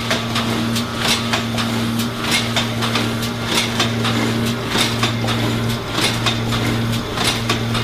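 A packaging machine hums steadily.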